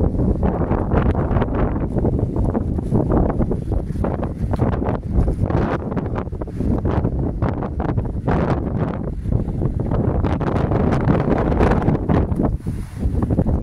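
Strong wind buffets the microphone outdoors with a loud, steady rumble.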